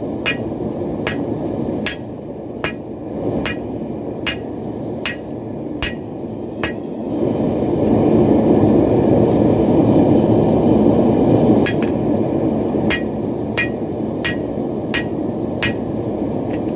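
A hammer rings sharply on an anvil in steady, even blows.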